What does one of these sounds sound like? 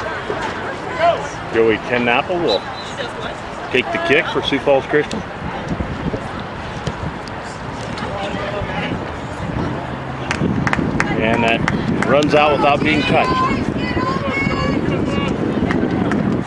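Young players shout to each other across an open playing field.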